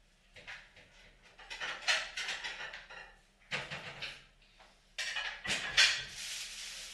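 Dishes clink and clatter.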